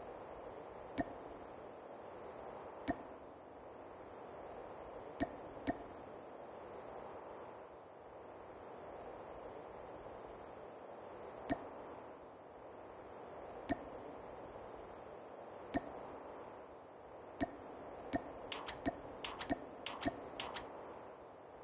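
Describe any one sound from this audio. Short, sharp menu clicks sound now and then, coming quickly in a burst near the end.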